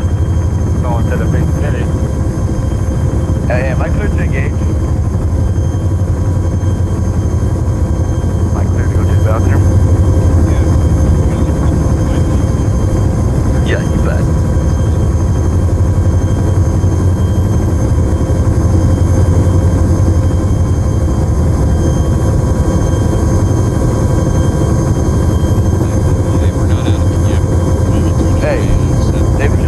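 Aircraft engines drone loudly and steadily.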